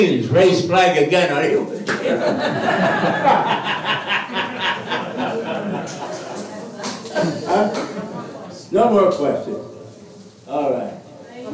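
An elderly man speaks with animation into a microphone, heard over a loudspeaker in a room.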